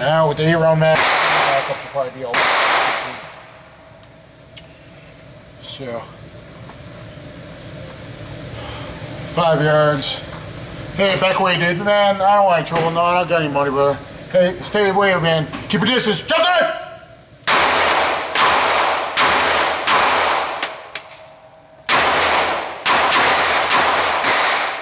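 Gunshots fire in quick bursts and echo sharply indoors.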